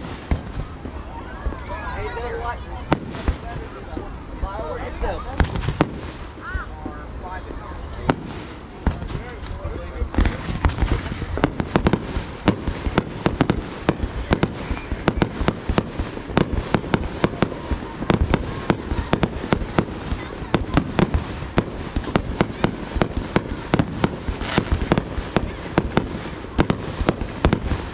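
Fireworks burst with loud bangs and rapid crackling overhead.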